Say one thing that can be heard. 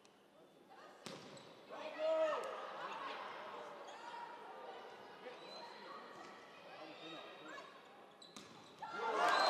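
A volleyball is hit with sharp slaps in a large echoing hall.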